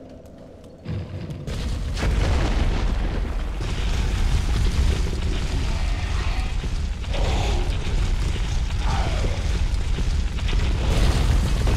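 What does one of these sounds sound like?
Footsteps scuff over stone.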